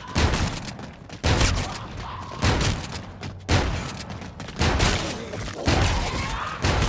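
A gun fires loud bursts of shots.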